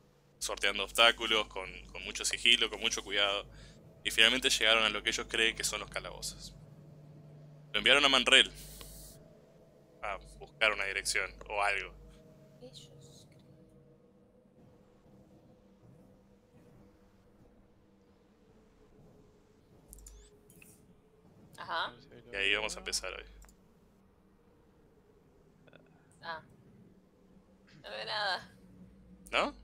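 A man talks with animation over an online call.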